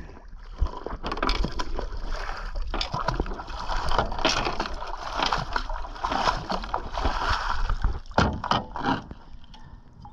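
Water splashes and churns as a heavy object is dropped into the sea.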